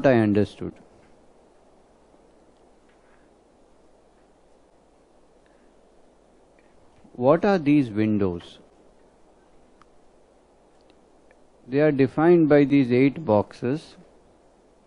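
An elderly man speaks calmly into a headset microphone, pausing between phrases.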